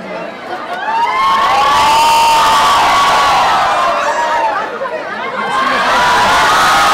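A crowd cheers and screams loudly.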